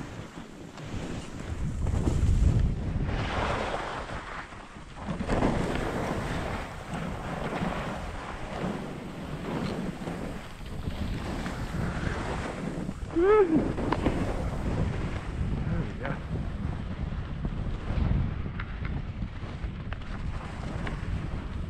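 Skis scrape and hiss over crusty snow.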